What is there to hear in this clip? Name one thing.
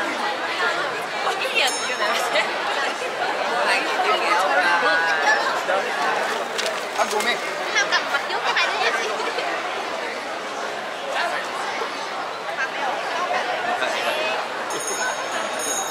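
A crowd of men and women chatters and talks all around, close by.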